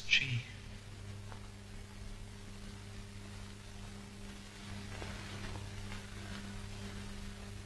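A young man speaks weakly and quietly.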